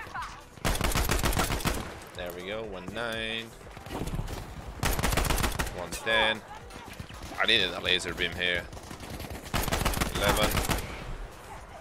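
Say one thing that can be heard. Rapid gunshots rattle loudly in bursts.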